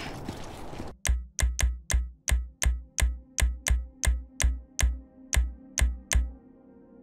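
A menu ticks rapidly with sharp clicks as options scroll.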